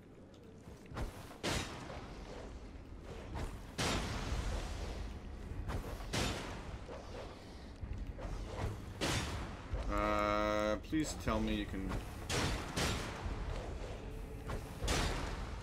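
Blows and clashes of a sword fight ring out.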